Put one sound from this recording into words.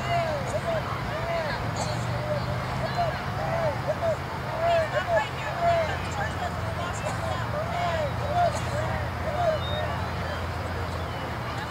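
A man talks to a group of children outdoors.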